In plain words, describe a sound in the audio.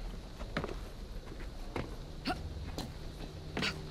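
A young man speaks calmly and quietly, close by.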